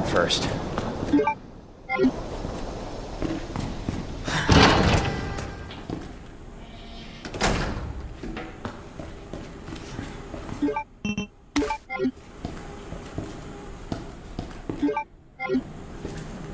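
Short electronic beeps sound as a menu opens.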